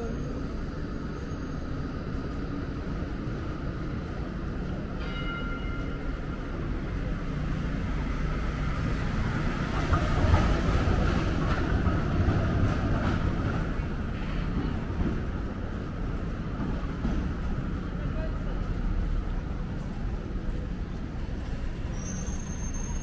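Steady city traffic rumbles outdoors.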